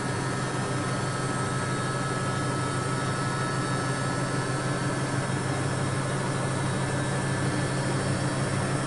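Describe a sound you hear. Water and suds slosh inside a washing machine drum.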